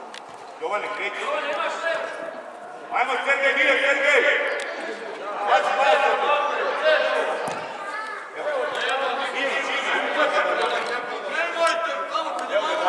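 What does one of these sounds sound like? Children shout and call out in a large echoing hall.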